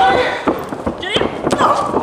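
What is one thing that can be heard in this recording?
A kick lands with a smack.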